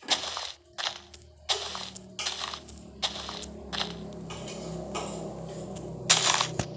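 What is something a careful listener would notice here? Dirt crunches in short bursts as it is dug.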